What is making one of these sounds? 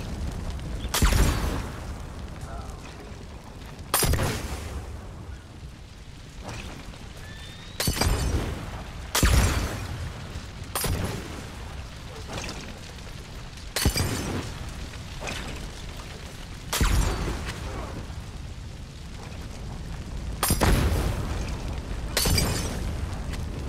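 Fire bursts into flame with a sudden whoosh, again and again.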